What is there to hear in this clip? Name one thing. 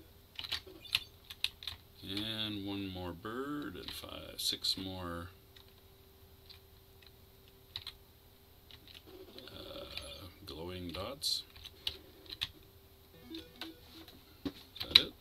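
Short electronic game beeps and blips sound.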